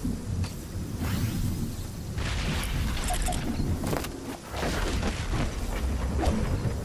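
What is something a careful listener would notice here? A low, eerie storm wind rumbles steadily.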